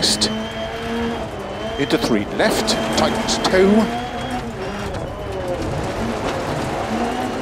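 A rally car engine revs hard and shifts gears.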